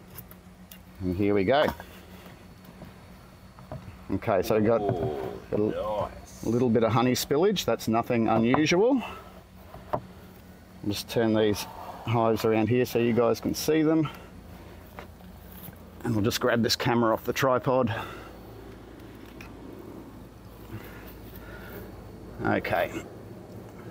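A man talks calmly nearby, in short bursts.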